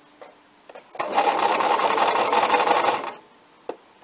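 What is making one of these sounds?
A sewing machine whirs as it stitches quickly.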